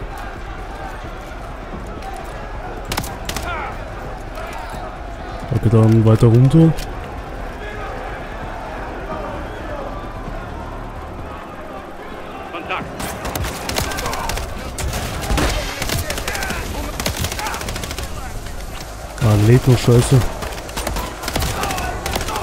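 Rifle shots fire in short, sharp bursts.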